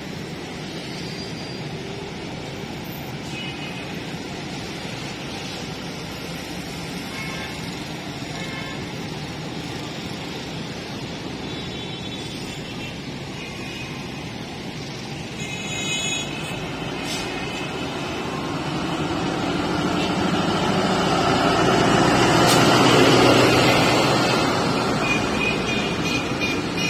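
A diesel train engine rumbles, growing louder as it approaches and passes close by.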